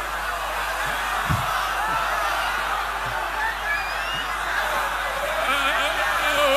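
A large crowd cheers and chatters.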